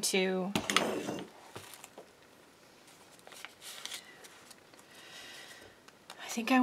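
Paper rustles and crinkles as pages are handled.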